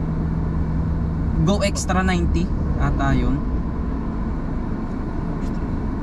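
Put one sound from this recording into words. A truck passes by in the next lane.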